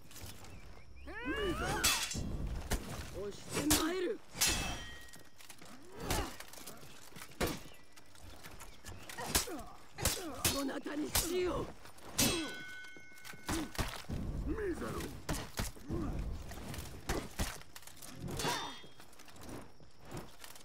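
Heavy blows thud against armour.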